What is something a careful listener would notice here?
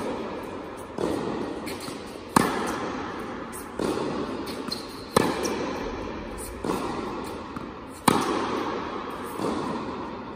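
A tennis ball bounces off a wall with a dull thud.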